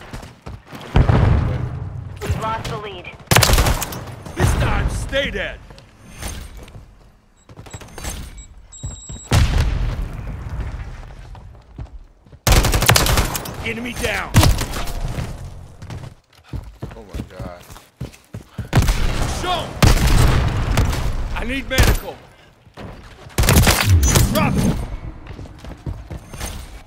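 Sniper rifle shots crack loudly and echo.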